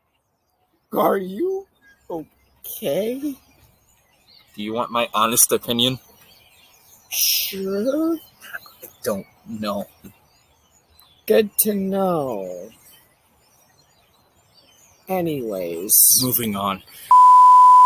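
Young men talk with animation close by.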